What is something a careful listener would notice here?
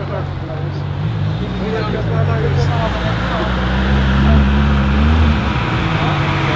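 A car engine revs up and down.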